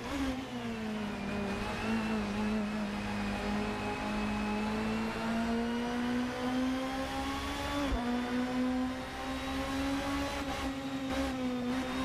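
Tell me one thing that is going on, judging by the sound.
A racing car engine accelerates hard through the gears, heard through loudspeakers.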